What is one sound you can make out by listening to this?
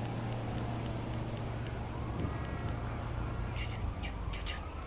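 A car engine hums and passes close by.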